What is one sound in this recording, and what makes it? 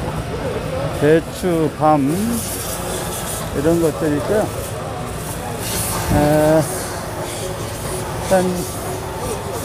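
An elderly man talks nearby in short bursts.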